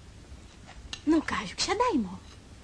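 A woman speaks briefly.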